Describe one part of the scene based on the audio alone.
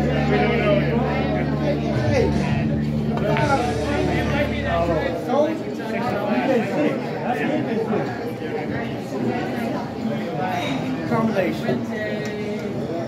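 People talk and chatter nearby in a busy room.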